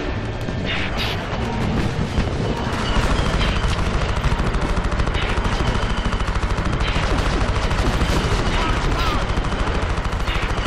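A heavy walker vehicle thuds along in steady rapid steps.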